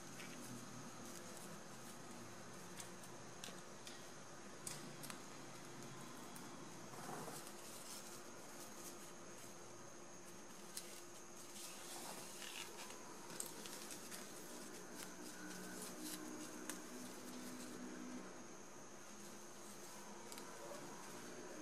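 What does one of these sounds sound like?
Satin ribbon rustles and crinkles as hands fold it.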